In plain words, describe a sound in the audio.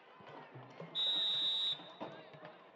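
A referee's whistle blows once, shrill and steady.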